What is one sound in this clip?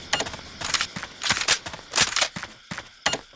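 A gun fires in rapid bursts.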